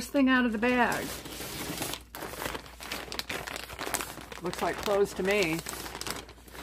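Tissue paper rustles and crinkles.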